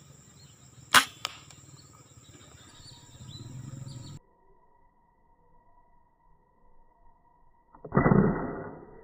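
A rifle fires a single loud, sharp shot.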